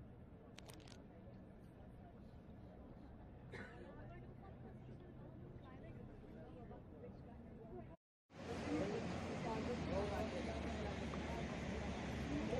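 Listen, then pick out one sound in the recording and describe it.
A river flows and murmurs steadily.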